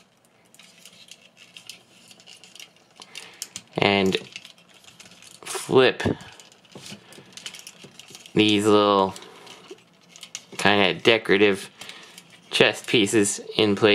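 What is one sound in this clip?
Plastic parts of a toy click and creak as they are handled.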